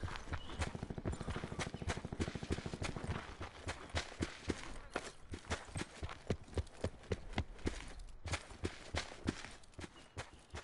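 Footsteps run quickly and steadily over grass.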